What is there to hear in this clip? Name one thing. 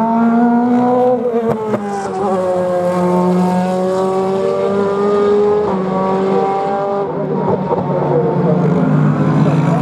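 A GT race car engine roars through a bend, its pitch falling and climbing as it shifts gears.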